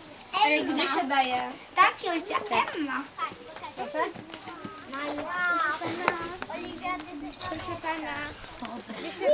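A young girl talks excitedly close by.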